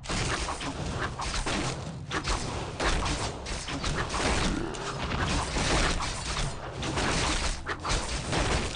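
Swords clash and strike repeatedly in a fierce battle.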